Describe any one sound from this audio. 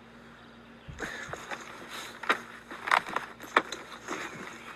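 A blanket flaps and rustles as it is spread out.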